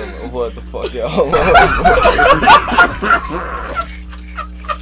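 Several young men laugh loudly and whoop.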